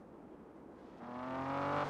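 A car engine revs up, rising in pitch.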